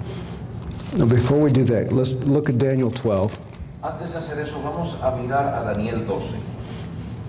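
A man speaks into a microphone in a large room, slowly and earnestly.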